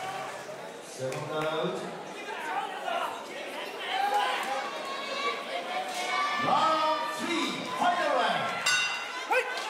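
A large crowd murmurs and calls out in an echoing arena.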